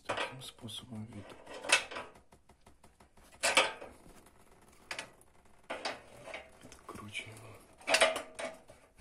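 A metal wrench clicks and scrapes against a bolt.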